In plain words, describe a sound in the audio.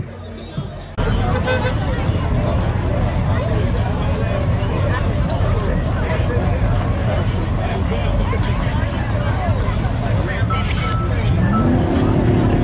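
Race car engines idle with a loud, deep rumble.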